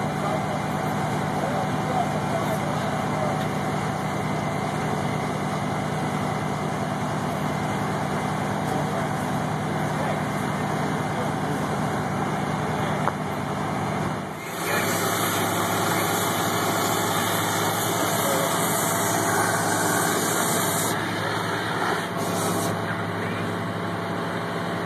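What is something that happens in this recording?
A fire engine idles with a steady low hum.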